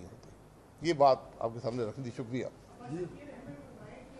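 A middle-aged man speaks calmly into microphones.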